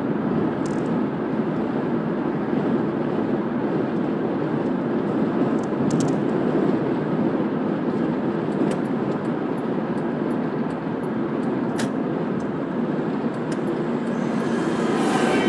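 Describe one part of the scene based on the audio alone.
Tyres roll steadily on a smooth road.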